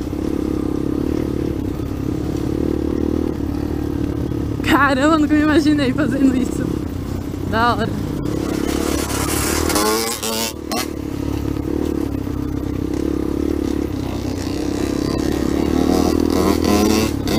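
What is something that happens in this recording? A dirt bike engine runs while riding along a dirt trail.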